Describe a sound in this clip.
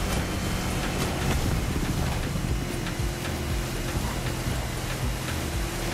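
Water splashes and hisses against a speeding boat's hull.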